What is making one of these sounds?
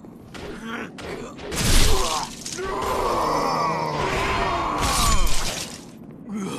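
Heavy sword blows land with loud thuds and clangs.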